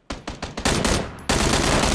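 Rapid gunshots crack close by.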